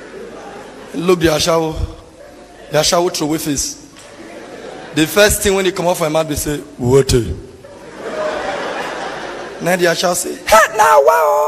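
A young man speaks loudly and with animation through a microphone.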